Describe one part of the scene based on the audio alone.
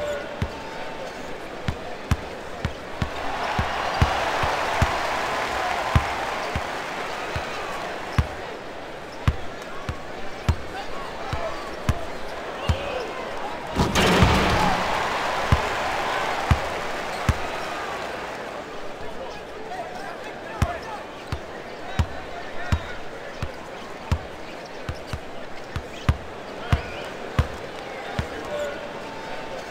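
A crowd roars in a large arena, swelling and fading.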